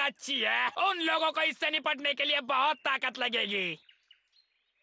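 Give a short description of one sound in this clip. A man speaks with animation in a cartoonish voice.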